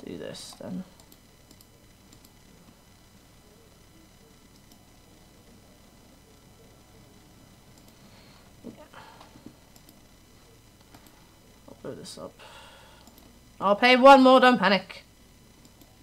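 A young woman speaks briefly into a microphone, in short bursts with pauses.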